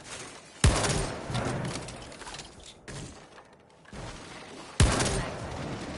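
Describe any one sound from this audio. A gun fires sharp single shots.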